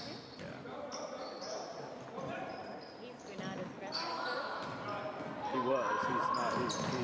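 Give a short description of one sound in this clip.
Spectators talk and shout, echoing in a large hall.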